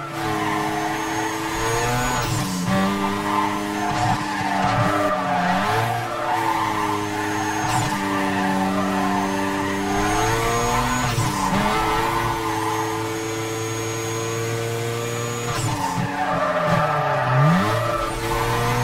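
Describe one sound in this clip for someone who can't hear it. A sports car engine roars at high revs, dropping briefly at each gear change.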